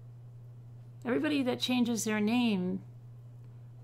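A middle-aged woman speaks briefly and calmly into a microphone.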